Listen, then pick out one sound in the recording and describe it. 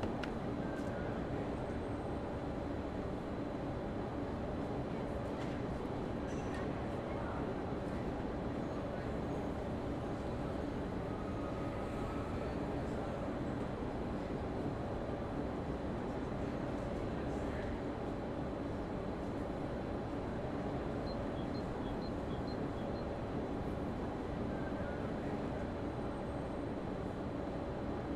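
A train hums steadily while standing still.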